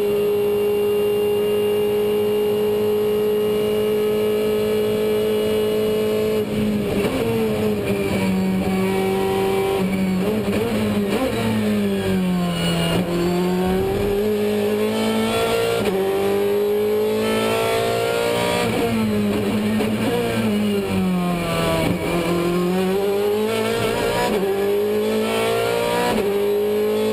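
A race car engine roars loudly from inside the cabin, revving up and dropping as gears shift.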